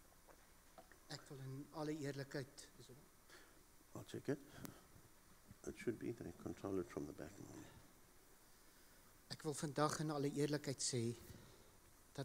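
A middle-aged man speaks into a microphone in an echoing hall.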